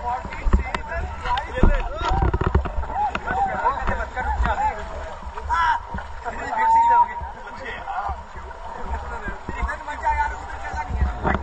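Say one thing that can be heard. Several young people shout and laugh excitedly outdoors.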